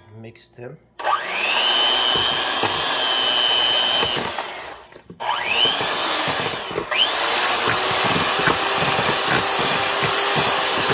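An electric hand mixer whirs loudly, beating in a metal bowl.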